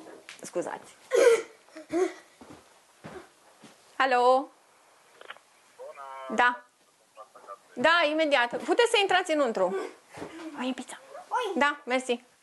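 A woman talks on a phone close by.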